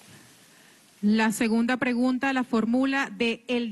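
A woman speaks clearly into a microphone nearby.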